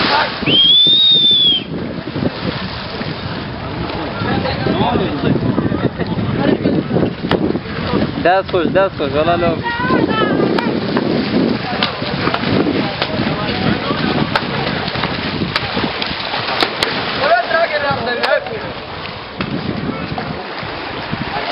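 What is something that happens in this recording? A river flows and ripples.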